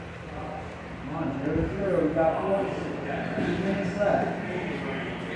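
A man talks nearby in a casual voice.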